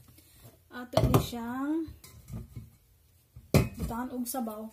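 Vegetables drop into a metal pot with a thud.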